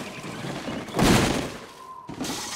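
Heavy bags thump onto the ground.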